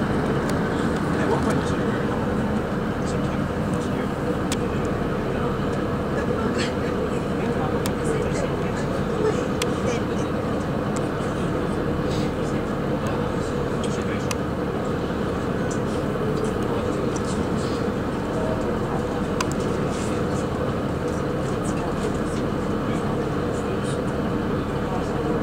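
A train rumbles steadily along the rails, heard from inside a carriage.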